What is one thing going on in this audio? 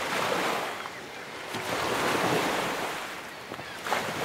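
Waves crash and wash against rocks.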